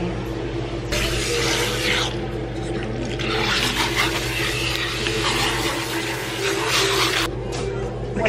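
Water sprays from a hand shower and splashes into a basin.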